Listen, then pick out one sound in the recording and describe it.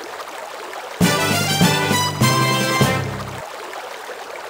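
A short cheerful jingle plays.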